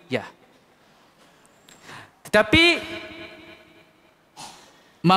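A young man speaks with emphasis into a microphone.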